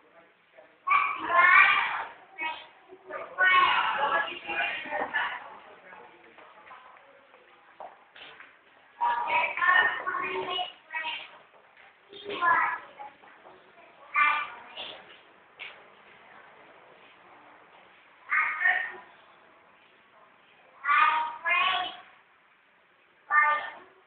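A boy speaks with animation into a microphone, heard through a loudspeaker in an echoing hall, with pauses between phrases.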